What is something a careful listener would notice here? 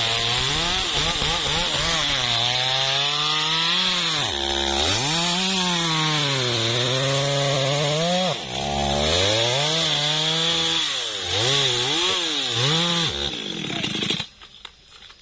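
A chainsaw revs up and down loudly, close by.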